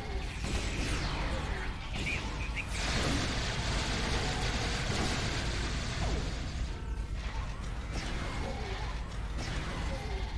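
Energy weapons fire in crackling bursts.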